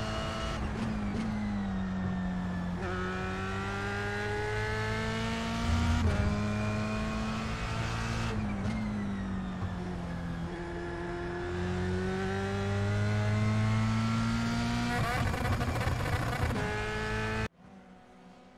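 A racing car engine roars loudly, revving up and dropping in pitch with each gear change.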